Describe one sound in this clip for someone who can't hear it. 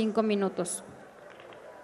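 A woman speaks briefly into a microphone.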